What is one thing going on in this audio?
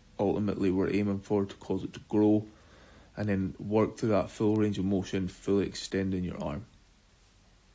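A man speaks calmly and close up.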